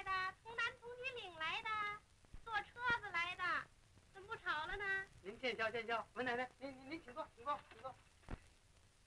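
A woman speaks in a high, lively voice.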